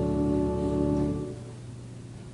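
A choir sings a held chord in a large echoing hall, then stops.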